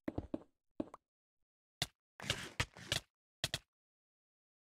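A sword strikes a player with short thuds.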